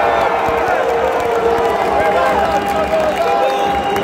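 Spectators clap their hands close by.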